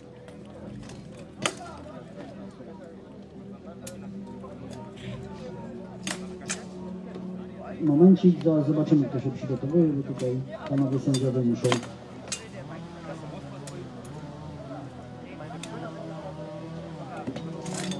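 Metal weapons clash and bang against shields.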